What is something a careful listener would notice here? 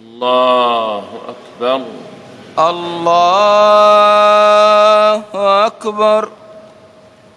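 A man chants in a long, held melody through loudspeakers, echoing in a large hall.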